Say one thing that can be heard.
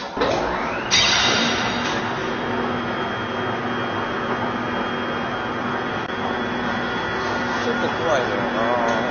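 A medical scanner hums steadily.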